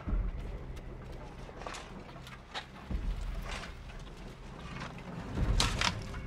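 Many shovels scrape and thud into dry earth.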